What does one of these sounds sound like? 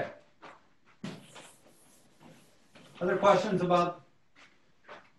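A chalk eraser rubs across a blackboard.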